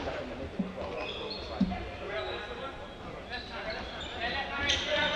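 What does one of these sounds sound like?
Young men shout and call out to each other across an echoing hall.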